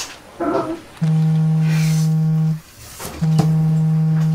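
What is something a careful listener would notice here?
A phone rings loudly with a steady buzzing tone.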